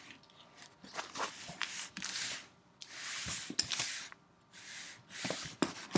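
A cardboard box scrapes and rustles as hands turn it over.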